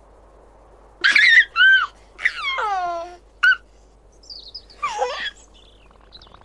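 A baby giggles and laughs brightly.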